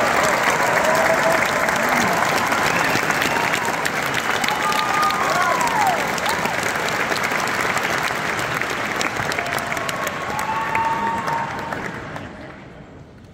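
A crowd applauds and cheers loudly in a large hall.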